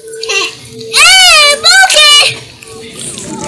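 A young child squeals loudly close by.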